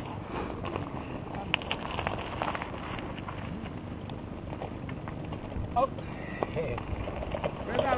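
Mountain bike tyres crunch over gravel as a cyclist rolls past.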